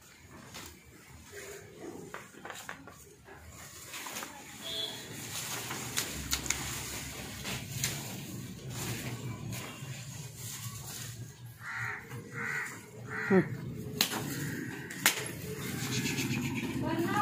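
Buffaloes munch and rustle dry fodder.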